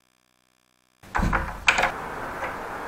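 A door latch clicks open.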